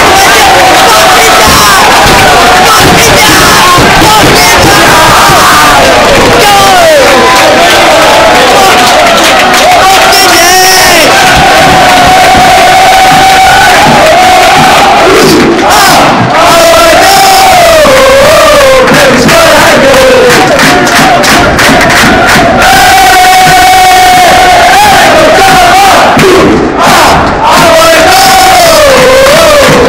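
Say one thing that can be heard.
A large crowd of men chants and sings loudly close by, outdoors, sounding harsh and distorted.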